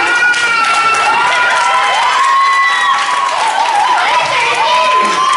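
Young children shout and cheer nearby.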